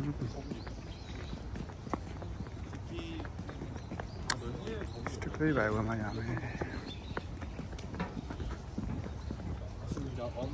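Footsteps tap on hard paving outdoors.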